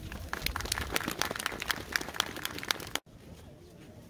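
An audience claps outdoors.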